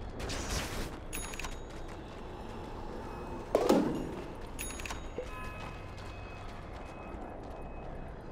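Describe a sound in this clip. Weapons clash in a fight.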